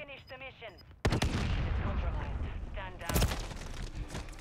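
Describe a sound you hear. Rapid gunshots crack and echo.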